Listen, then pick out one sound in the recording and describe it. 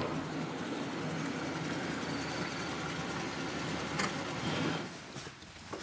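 A car engine rumbles as a car rolls slowly up a driveway.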